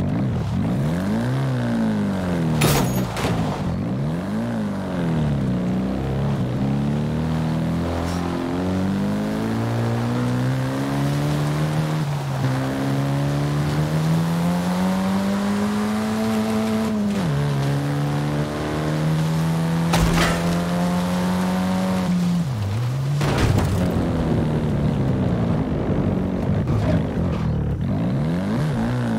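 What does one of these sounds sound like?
A car engine revs up and down, rising in pitch as it speeds up and shifting gears.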